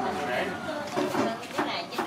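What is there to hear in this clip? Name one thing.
Scissors snip through a bird's neck.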